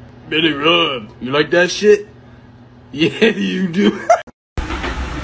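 A cat meows loudly up close.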